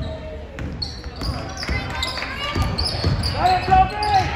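A basketball bounces on a hard wooden floor in an echoing gym.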